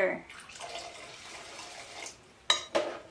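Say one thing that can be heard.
Water pours into a pot with a splashing gurgle.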